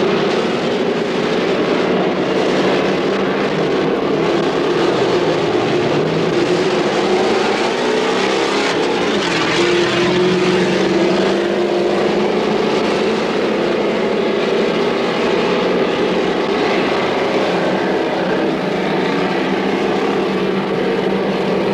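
Heavy trucks with V8 petrol engines roar as they race over a dirt track.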